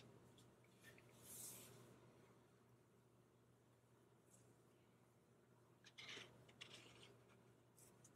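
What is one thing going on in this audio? Metal watch links clink softly in gloved hands.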